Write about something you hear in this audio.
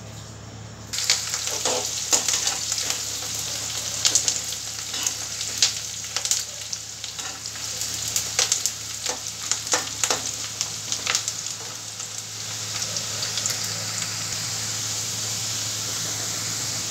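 Onions sizzle and crackle loudly in hot oil.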